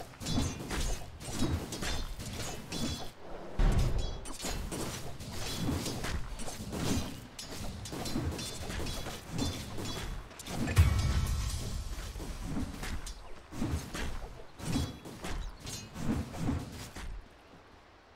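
Weapons clash and strike in a busy fantasy battle.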